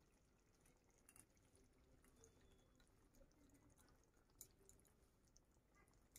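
Spoonfuls of soft curd plop into a pan.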